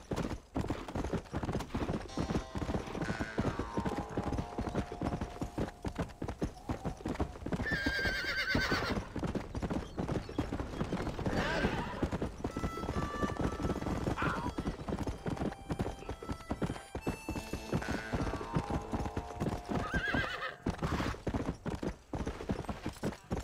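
A horse gallops steadily with rapid hoofbeats on a dirt trail.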